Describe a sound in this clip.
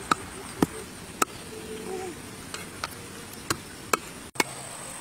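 A child knocks a pestle into a mortar.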